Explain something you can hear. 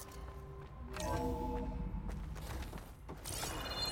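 A heavy metal door slides open with a mechanical whir.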